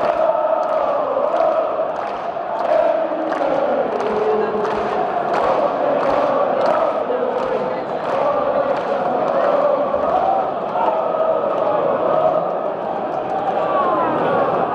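A large stadium crowd sings and chants loudly in unison.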